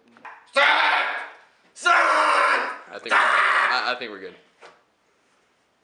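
A young man speaks loudly and with animation close by.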